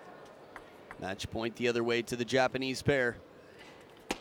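A ping-pong ball bounces on a table.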